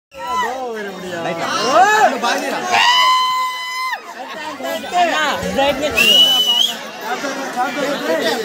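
Music with a singing voice plays loudly over a loudspeaker.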